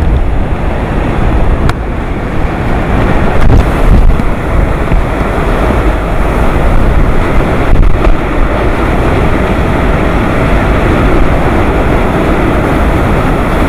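Strong typhoon wind roars and buffets loudly outdoors.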